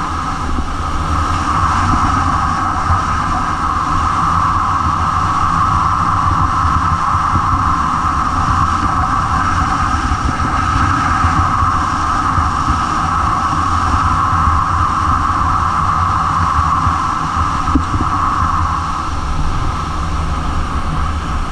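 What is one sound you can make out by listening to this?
A snowboard scrapes and hisses steadily over snow.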